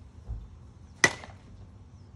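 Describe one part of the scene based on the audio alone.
A bat cracks sharply against a ball off a tee.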